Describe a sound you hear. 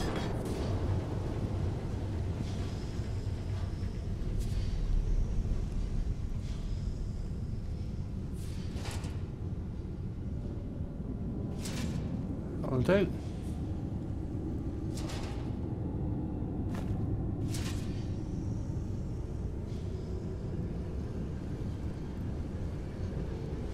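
Footsteps tap on a stone floor in a large echoing hall.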